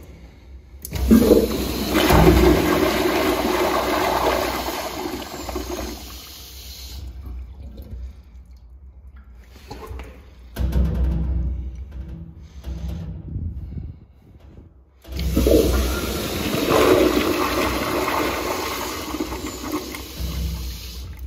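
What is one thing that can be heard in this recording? A toilet flushes loudly with a rush of water, twice.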